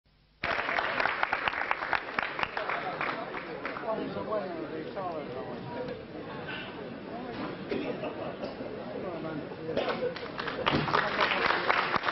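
An audience claps in a large hall, fading to a murmur and then swelling again.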